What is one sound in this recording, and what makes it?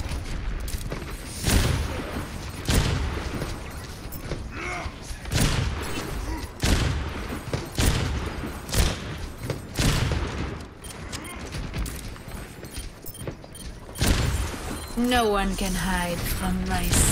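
Heavy gunfire booms in bursts.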